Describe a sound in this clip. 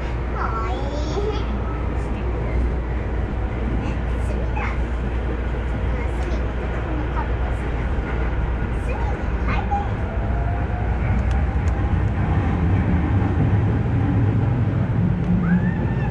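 A train rumbles along the tracks with a steady low roar that grows a little louder.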